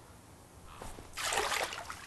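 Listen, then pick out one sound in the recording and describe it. Water splashes loudly as a large animal plunges in.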